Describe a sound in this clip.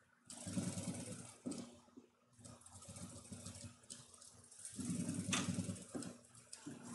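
A sewing machine whirs as it stitches in short, rapid bursts.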